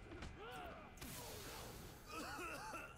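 A smoke pellet bursts with a loud hiss.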